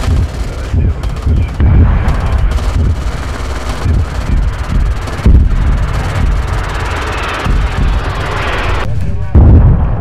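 Rapid anti-aircraft guns fire in bursts from a warship.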